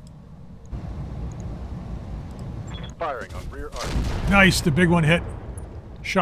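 Weapons fire in quick bursts.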